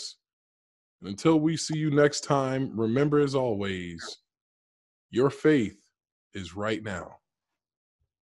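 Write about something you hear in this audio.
A man speaks with animation into a close microphone over an online call.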